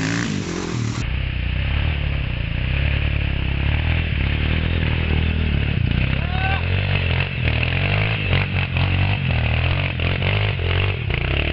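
A dirt bike engine revs hard and labours close by.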